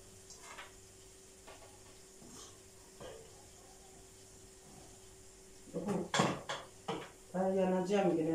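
Dishes clink softly at a sink.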